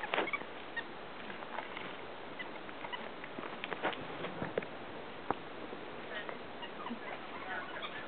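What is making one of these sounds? A small monkey chirps in short, high calls nearby.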